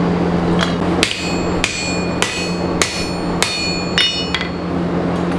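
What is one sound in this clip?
A hammer strikes metal on an anvil with sharp ringing blows.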